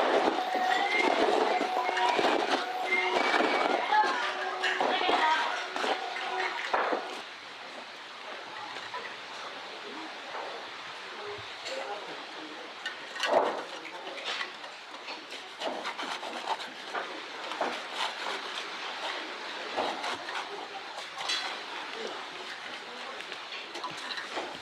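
Hooks tear and squelch through wet flesh.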